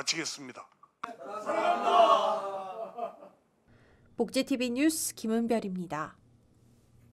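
A group of men and women shout and cheer together.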